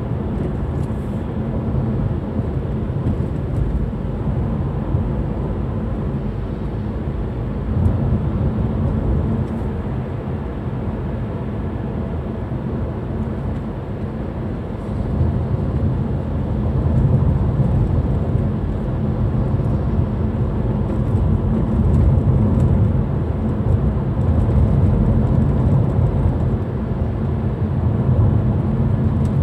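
Tyres roll on the road with a low rumble.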